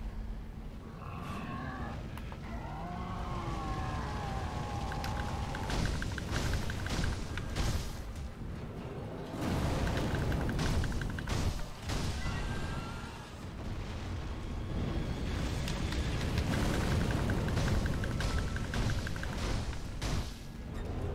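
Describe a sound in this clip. A huge beast growls and roars.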